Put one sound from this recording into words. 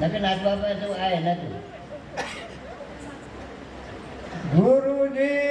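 An elderly man sings into a microphone, heard through a loudspeaker, holding long drawn-out notes.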